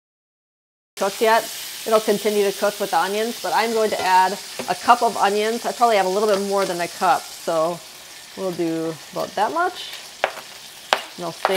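Bacon sizzles and crackles in a hot pan.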